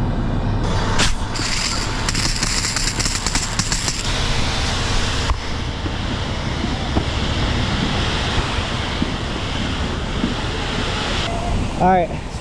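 A fire hose nozzle sprays water with a loud, steady hiss.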